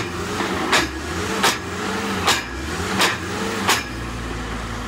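A drill rig bangs loudly in regular strokes.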